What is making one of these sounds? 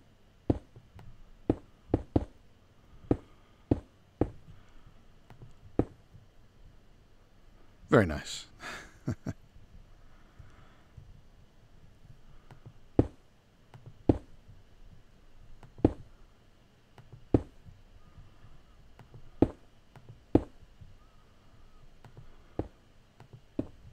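Blocks are placed with short, dull knocks, again and again.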